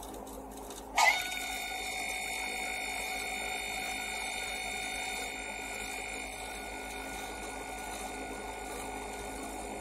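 A steady electronic buzz drones from a computer's speakers after it freezes.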